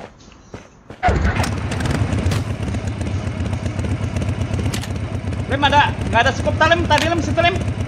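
A motorcycle engine roars and idles with a steady low rumble.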